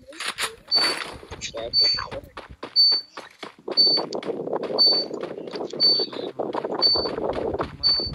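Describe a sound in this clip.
A short high beep sounds once every second.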